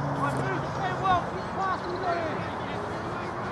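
Young men shout to each other across an open outdoor pitch, some way off.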